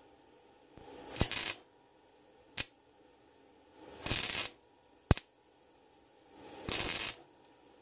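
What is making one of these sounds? An electric welder crackles and sizzles in short bursts.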